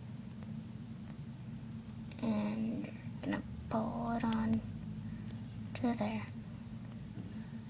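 A small plastic hook clicks against plastic pegs.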